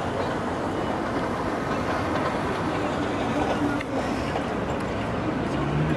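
A woman speaks outdoors nearby.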